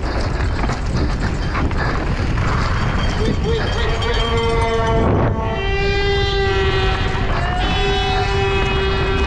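Wind roars past at speed.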